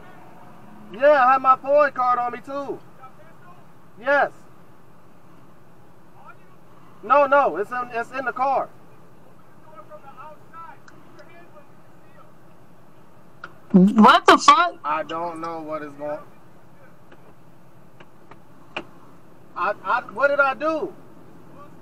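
A man talks in short bursts close by inside a car.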